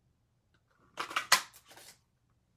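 A paper punch clicks sharply as it cuts through card.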